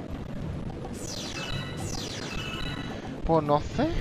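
Bright chimes ring quickly as coins are collected.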